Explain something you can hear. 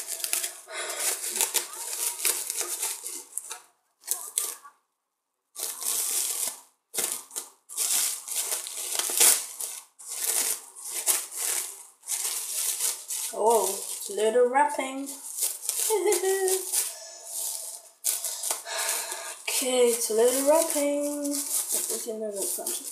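Plastic wrap crinkles and rustles in hands.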